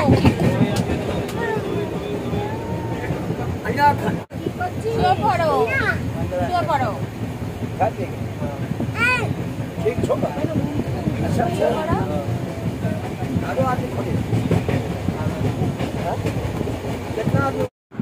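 A small child babbles and squeals close by.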